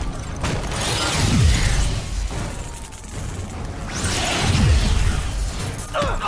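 Deep booming impacts thud.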